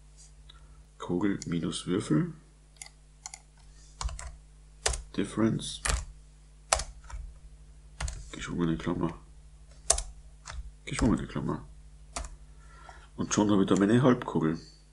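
A middle-aged man speaks calmly and close to a microphone, in short phrases.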